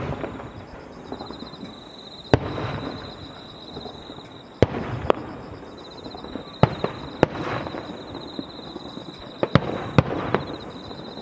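Fireworks crackle and fizzle after bursting.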